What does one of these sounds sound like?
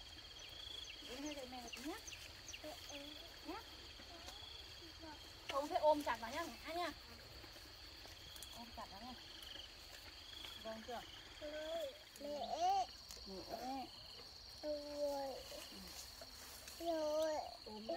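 A young woman talks softly nearby.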